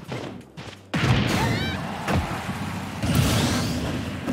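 A loud burst of energy whooshes as a round ends.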